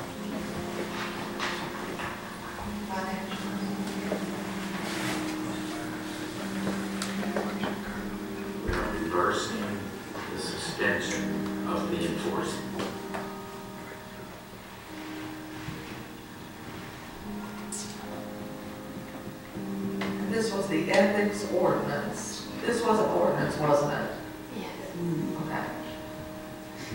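A man speaks calmly through a microphone in a large room with some echo.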